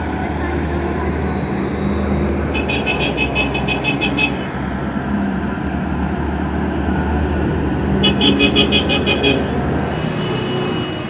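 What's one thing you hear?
Heavy armoured vehicles rumble slowly past with deep engines.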